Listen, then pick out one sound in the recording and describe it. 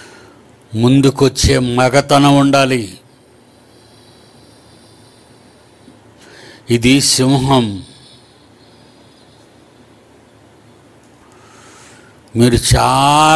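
An elderly man speaks slowly into a microphone, in short bursts with pauses.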